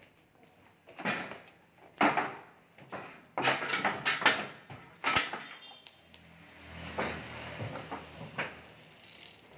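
Hooves thud and clatter on a wooden ramp.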